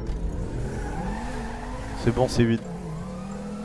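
A car's tyres screech as it drifts.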